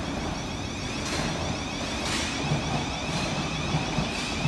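A train idles nearby with a steady low hum.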